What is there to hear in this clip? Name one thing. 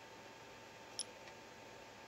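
A device gives a short, high beep.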